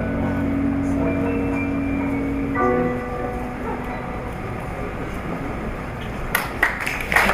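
A piano plays slow, ringing notes.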